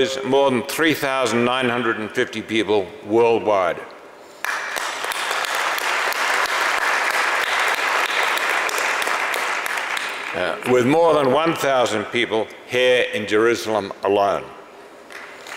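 An elderly man speaks calmly through a microphone in a large hall.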